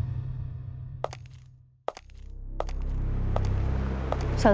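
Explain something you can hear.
Boot heels knock on a hard floor.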